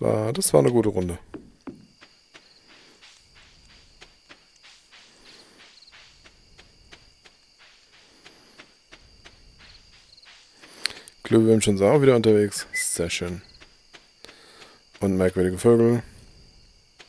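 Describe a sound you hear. A man speaks casually into a microphone close by.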